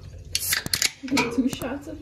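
A can pops and hisses open.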